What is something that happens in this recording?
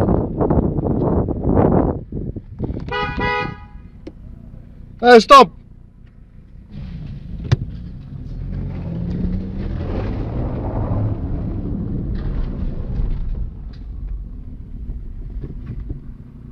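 A car engine hums low and steady from inside the car.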